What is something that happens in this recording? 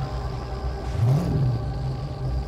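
A car engine revs up sharply.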